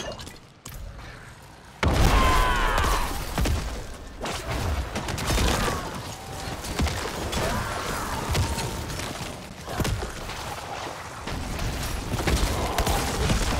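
Spell blasts and magic effects crackle and boom in a fantasy battle.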